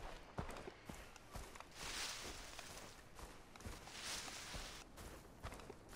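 Leaves and grass rustle as someone walks through them.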